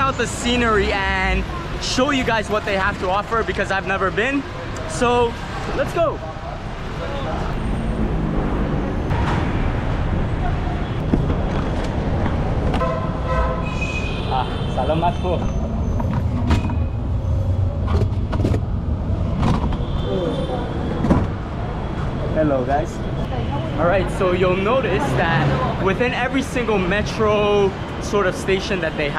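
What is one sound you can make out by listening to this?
A young man talks excitedly and close up.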